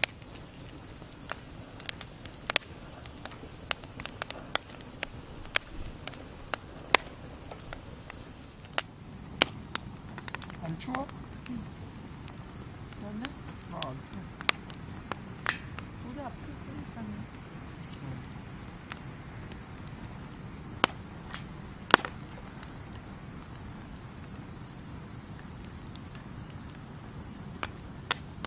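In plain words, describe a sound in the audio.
Wood fire crackles and pops sharply.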